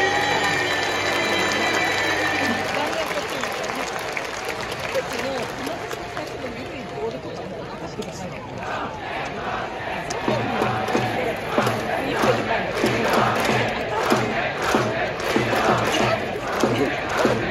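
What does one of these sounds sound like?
Trumpets play a fanfare over the crowd.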